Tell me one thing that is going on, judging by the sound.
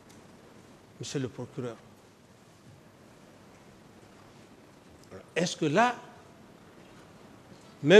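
A man speaks into a microphone in short bursts, with long pauses between phrases.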